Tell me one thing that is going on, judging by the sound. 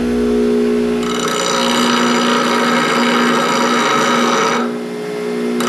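A metal rod grinds against a spinning grinding wheel with a harsh, gritty whine.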